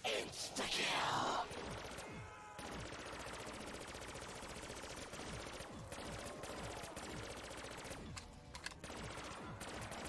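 A rapid-fire energy gun fires in quick bursts.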